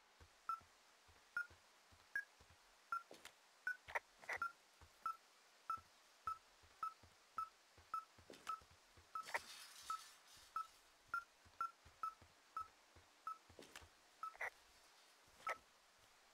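A handheld electronic device beeps in short, regular pips.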